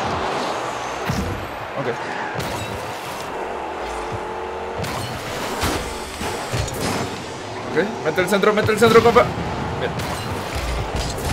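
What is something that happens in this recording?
Game car engines whoosh and boost.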